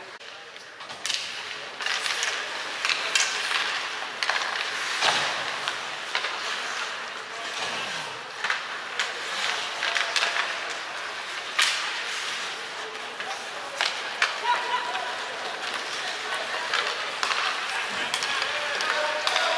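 Hockey sticks clack against the puck and each other.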